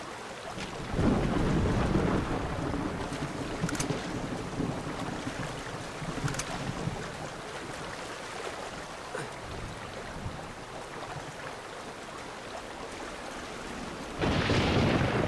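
Water splashes as a man wades through it.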